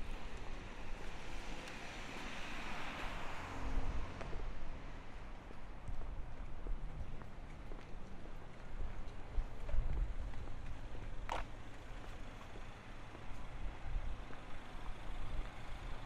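A car drives past slowly.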